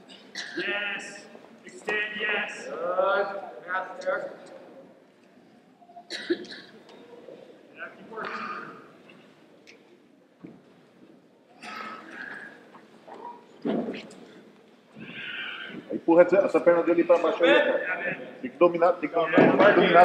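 Men shout instructions from beside the mat in a large echoing hall.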